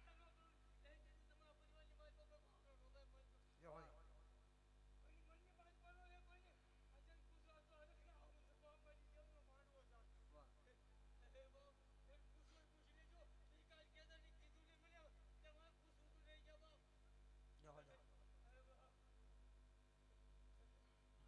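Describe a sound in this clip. A young man sings loudly and with passion through a microphone.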